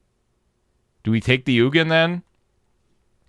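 A man speaks with animation through a close microphone.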